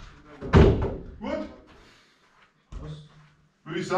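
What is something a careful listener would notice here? A ball is kicked with a thud in a small echoing room.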